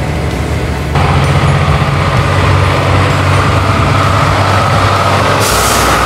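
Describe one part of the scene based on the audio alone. A heavy truck engine rumbles as the truck approaches across a bridge.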